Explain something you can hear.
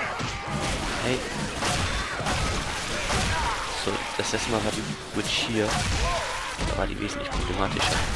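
Heavy blows thud and smack against bodies.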